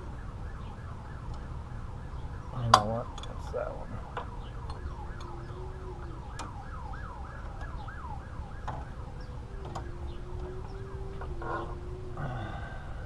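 A ratchet wrench clicks rapidly as a bolt is loosened.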